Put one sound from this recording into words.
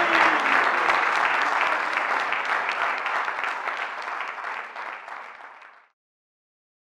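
Several acoustic guitars strum together and slowly fade out.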